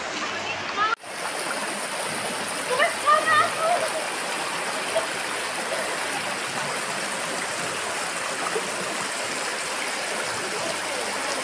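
Shallow water rushes and gurgles over stones.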